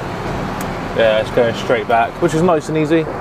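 A man speaks close to a microphone inside a vehicle cab.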